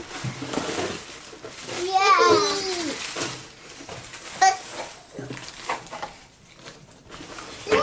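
Tissue paper rustles and crinkles.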